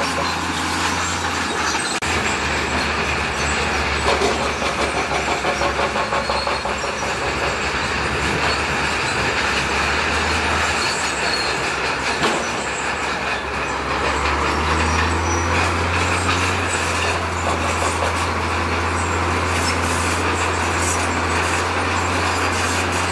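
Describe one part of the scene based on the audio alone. Rocks scrape and clatter under a bulldozer blade.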